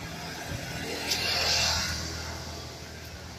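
Leaves rustle and brush close by.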